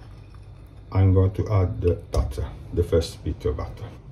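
A knife scrapes a lump of butter into a pan with a soft knock.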